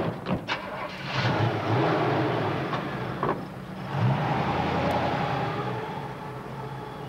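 A car engine rumbles at idle.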